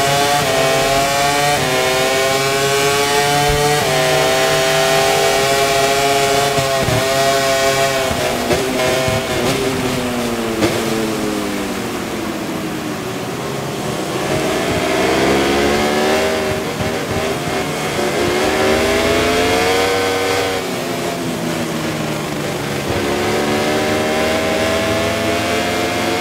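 A motorcycle engine revs high and shifts through the gears, rising and falling in pitch.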